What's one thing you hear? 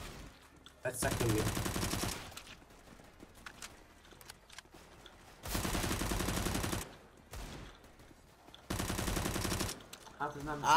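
Automatic gunfire rattles in quick bursts.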